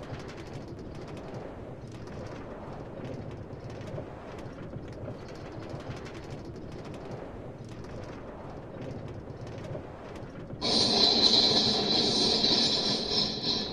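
A cart rolls steadily along rails with a low rumble.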